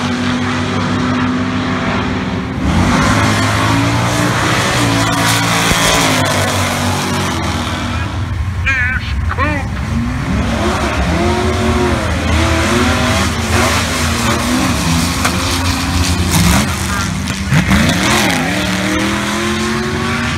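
Loud engines of drag racing cars rumble and roar outdoors.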